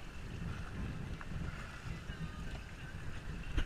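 Water splashes against the side of a boat.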